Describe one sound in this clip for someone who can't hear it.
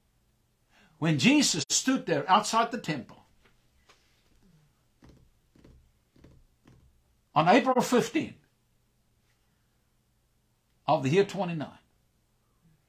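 A middle-aged man speaks with animation, close to a microphone, in short bursts.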